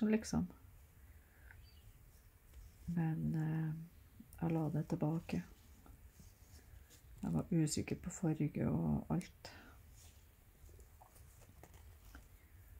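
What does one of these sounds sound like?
Thread rustles softly as it is pulled through cloth.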